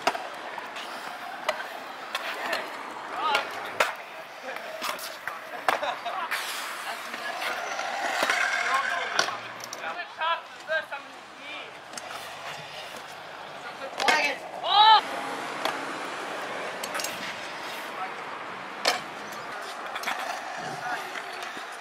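Scooter wheels roll and grind on concrete.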